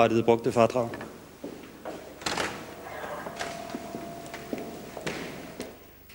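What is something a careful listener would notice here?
Footsteps tread along an indoor hallway.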